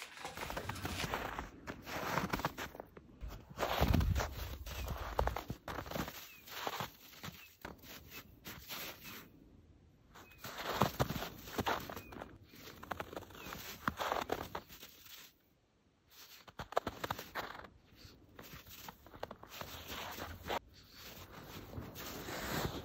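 A dog paws and digs at crunching snow in short bursts.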